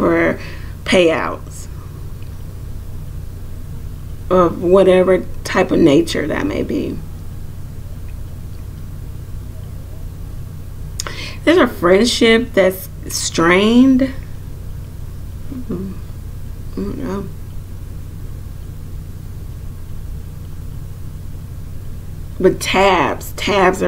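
A woman speaks calmly and close by, with long pauses.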